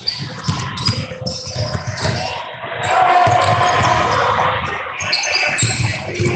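A basketball bounces on a hard floor with echoing thuds.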